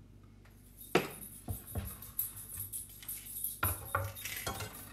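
A knife scrapes and taps on a wooden cutting board.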